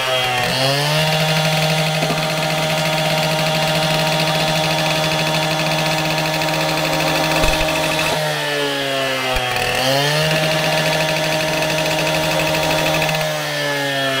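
A saw blade grinds loudly through a plastic pipe.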